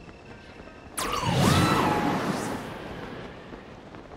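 A strong gust of wind roars upward, then fades.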